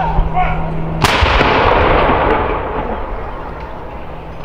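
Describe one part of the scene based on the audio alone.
A field gun fires a loud blank shot that booms and echoes away outdoors.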